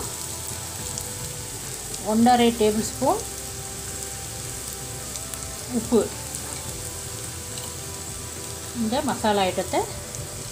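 Onions sizzle softly in a hot pan.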